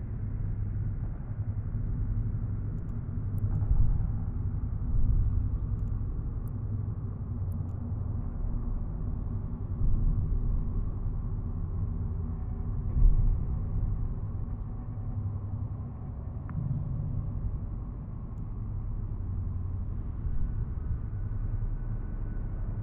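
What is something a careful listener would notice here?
A deep, steady engine rumble drones, with occasional louder swells.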